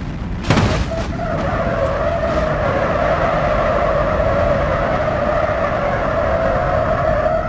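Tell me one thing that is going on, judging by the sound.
A damaged car scrapes and grinds along the track.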